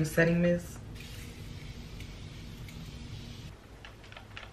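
A setting spray hisses.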